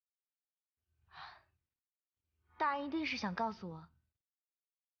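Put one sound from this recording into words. A young woman speaks calmly and closely.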